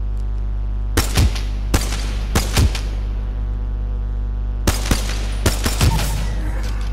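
Gunshots fire in short bursts, echoing in a tunnel.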